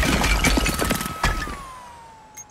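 A power drill whirs loudly.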